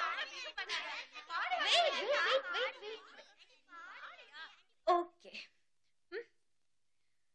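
Several young women chatter and laugh excitedly close by.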